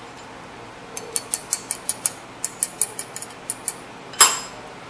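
A metal tool taps rapidly against metal.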